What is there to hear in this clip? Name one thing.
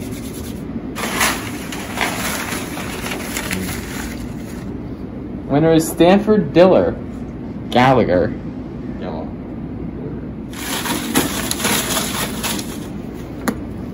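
Paper tickets rustle.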